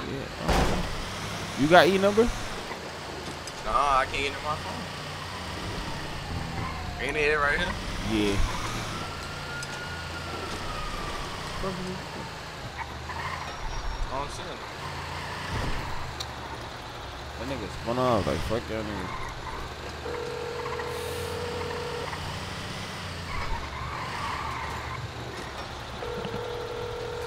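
A truck engine hums steadily as the truck drives.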